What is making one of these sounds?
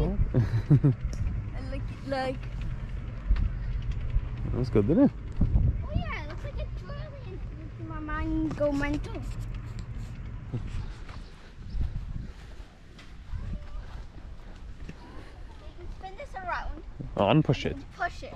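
A young girl talks and giggles close by.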